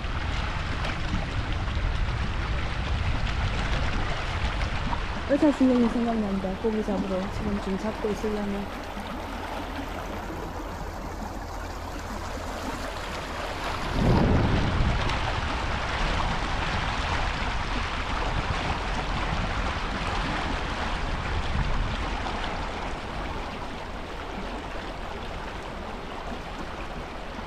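A wide river rushes past.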